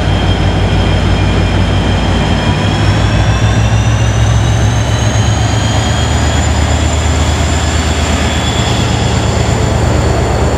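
A diesel locomotive's engine rumbles loudly close by as it passes.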